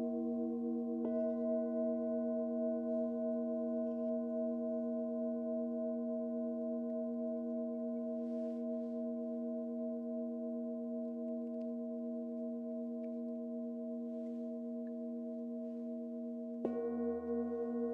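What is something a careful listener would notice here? A struck bowl rings out sharply, then lingers.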